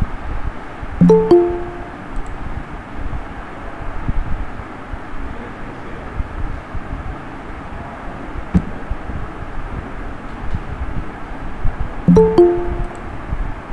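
A short electronic chime rings twice.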